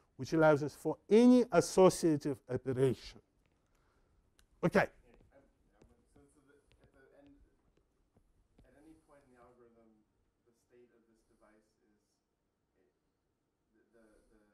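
An older man lectures calmly into a clip-on microphone.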